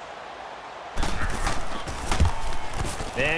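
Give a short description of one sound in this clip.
Football players collide with thuds of pads.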